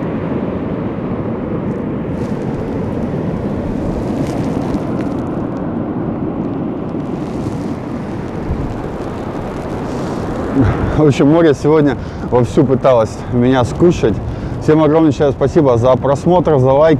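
Waves wash and rush steadily onto the shore.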